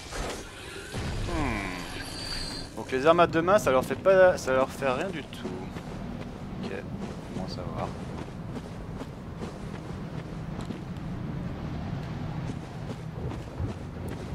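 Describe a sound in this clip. Footsteps crunch over gravel and dirt.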